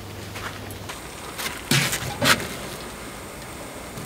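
A grill lid clunks open.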